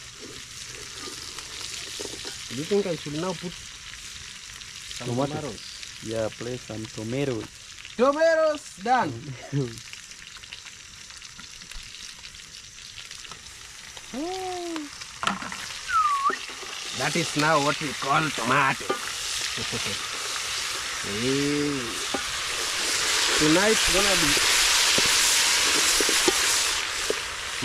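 A wooden spoon scrapes and stirs food in a metal pot.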